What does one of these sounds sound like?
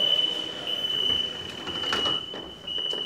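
Subway train doors slide shut with a thud.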